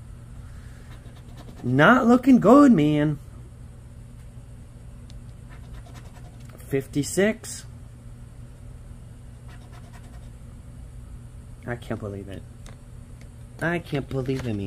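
A coin scratches a lottery ticket.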